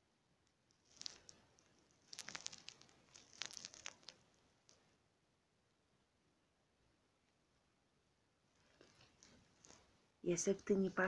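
A cat licks its paw with soft, wet smacking sounds.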